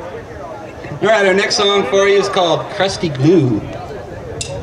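A young man speaks into a microphone, heard loud through outdoor loudspeakers.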